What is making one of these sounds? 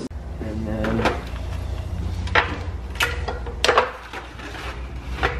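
Metal clanks and bangs sharply as a sheet metal brake is worked.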